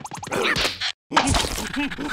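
A cardboard box tips over and noodles spill out with a rustle.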